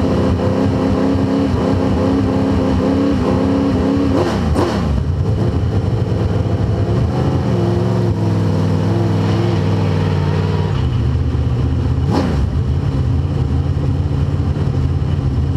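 A race car engine roars loudly from close by, its pitch rising and falling as gears shift.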